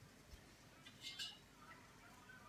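A metal pot lid clinks lightly.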